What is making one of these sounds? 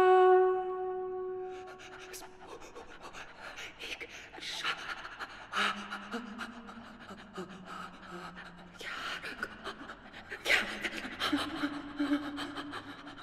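A young woman sings softly and slowly into a close microphone, holding long notes.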